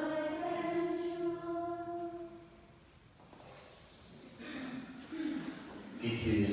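A congregation of women and men sings a hymn together in a large echoing hall.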